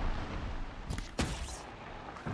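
A bow string snaps as an arrow is shot.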